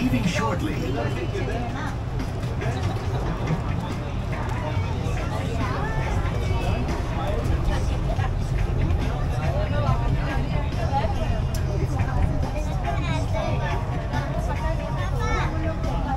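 Young people chatter nearby.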